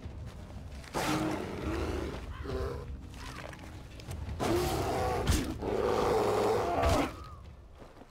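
A bear roars and growls loudly up close.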